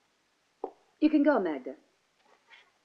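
A woman speaks briefly.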